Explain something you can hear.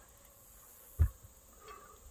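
A metal weight plate clanks once.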